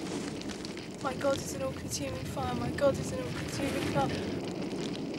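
A young woman sobs and cries out in distress.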